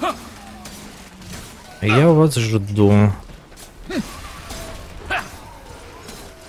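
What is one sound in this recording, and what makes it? A sword slashes and strikes in quick blows.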